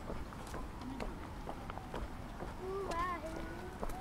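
Footsteps of several people walk on pavement close by.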